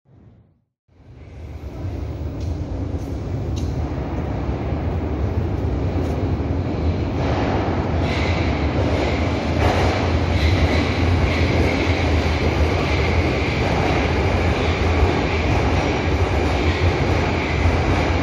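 A metro train rumbles through a tunnel, drawing steadily closer and louder.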